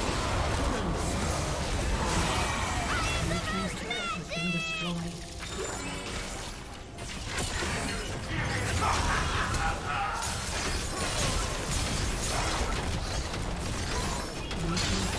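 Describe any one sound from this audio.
Game spell effects whoosh and crackle throughout a busy battle.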